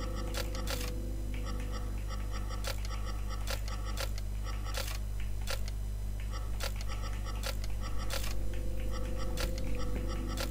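Metal keypad buttons click sharply, one after another.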